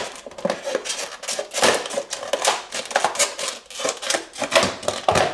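A plastic package crinkles and rustles in someone's hands.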